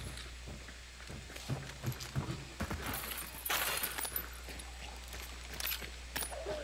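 Footsteps thud on wooden boards and dirt.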